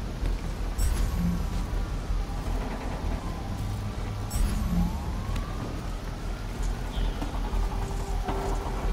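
Metal debris creaks and clatters.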